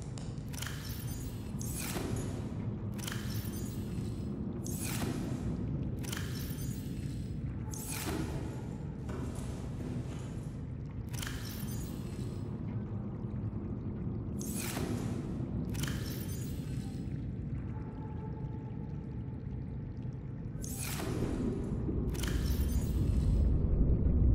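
Storage locker doors open and close again and again with short whooshing clunks.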